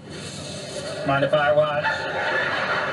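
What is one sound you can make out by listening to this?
A man speaks, heard through a loudspeaker.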